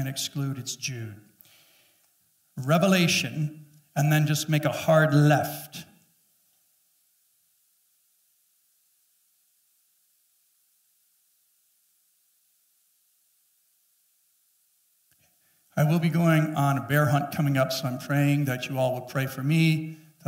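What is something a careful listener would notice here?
A middle-aged man speaks calmly through a microphone, pausing at length between phrases.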